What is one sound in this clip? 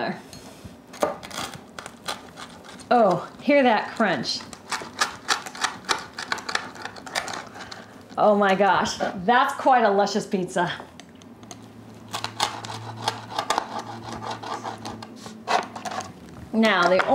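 A pizza cutter rolls and crunches through a crisp potato pancake.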